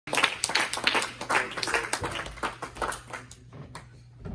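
A small crowd claps.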